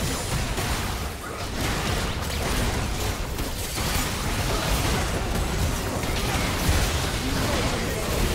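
Spell effects crackle and blast during a fight between game characters.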